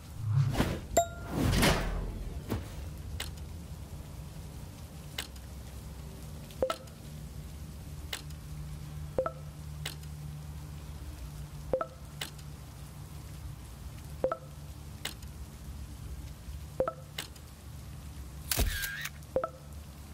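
Short soft clicks tick each time a menu selection moves along.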